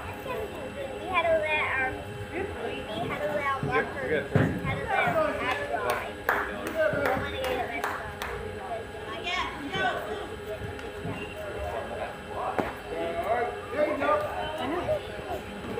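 Young players call out and chatter across an open field outdoors.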